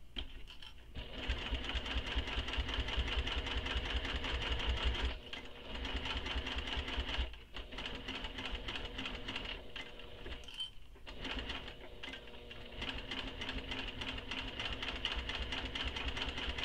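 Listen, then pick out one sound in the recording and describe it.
A sewing machine hums and whirs as it stitches fabric.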